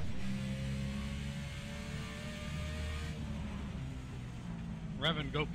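A race car engine roars at high revs.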